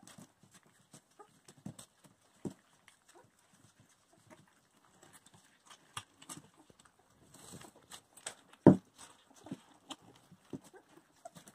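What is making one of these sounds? Puppies' paws patter and scratch on a wooden floor.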